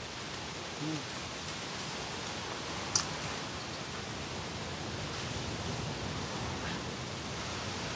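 Fish scales scrape under a knife.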